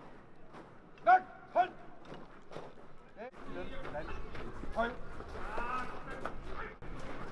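A man shouts sharp commands outdoors.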